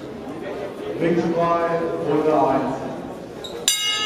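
A man calls out loudly across an echoing hall.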